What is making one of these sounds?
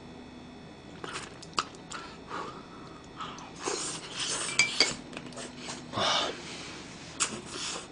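A young man chews and slurps food noisily close to a microphone.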